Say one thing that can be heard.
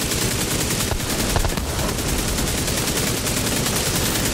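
An explosion booms with a crackling blast.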